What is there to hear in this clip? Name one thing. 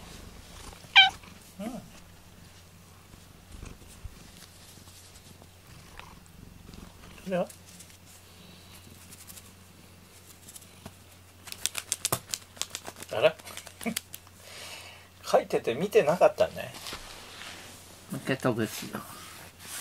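A cat meows close by, again and again.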